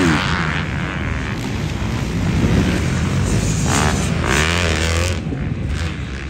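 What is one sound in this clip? A dirt bike engine revs loudly nearby.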